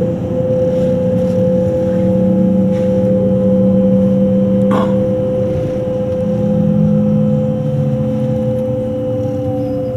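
Traction motors of an electric express train hum steadily, heard from inside the carriage.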